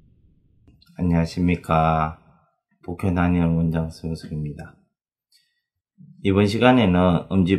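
A middle-aged man speaks calmly and closely to a microphone.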